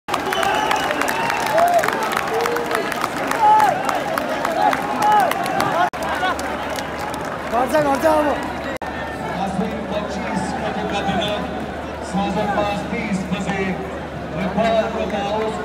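Young men shout and chant close by.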